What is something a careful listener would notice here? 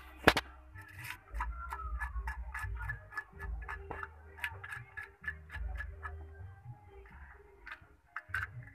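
A knife scrapes scales off a fish with quick, rhythmic strokes.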